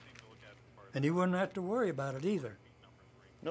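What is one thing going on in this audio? An elderly man speaks calmly nearby.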